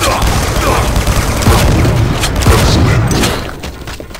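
Shotgun blasts boom in quick succession.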